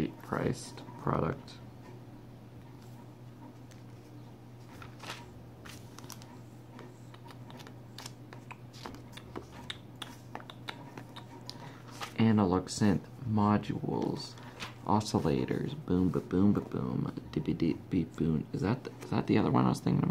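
Magazine pages rustle and flip as they are turned.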